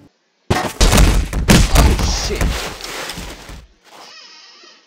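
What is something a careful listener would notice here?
A body crashes heavily onto the ground.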